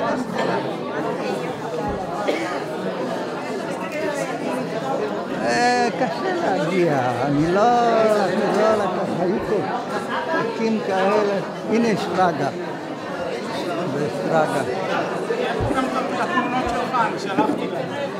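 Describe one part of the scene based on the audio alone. An elderly man talks with animation close by.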